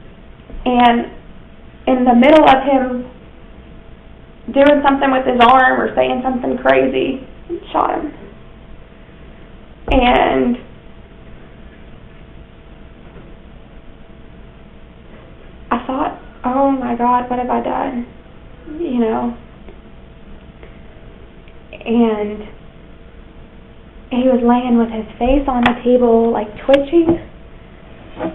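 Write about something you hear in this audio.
A young woman speaks calmly, in short bursts with pauses.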